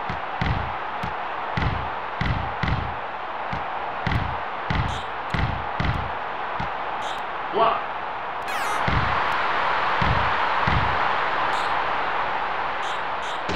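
A crowd murmurs and cheers steadily.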